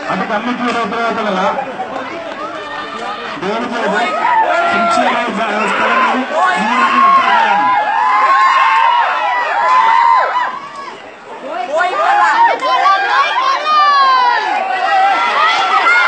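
Several men shout excitedly nearby, outdoors.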